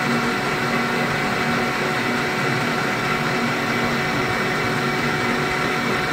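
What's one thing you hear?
A metal lathe hums steadily as it spins.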